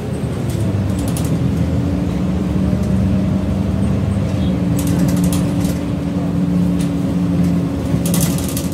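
Loose fittings in a bus rattle and click as it drives.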